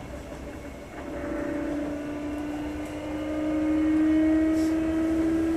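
An electric train's motor starts to whine and slowly rises in pitch.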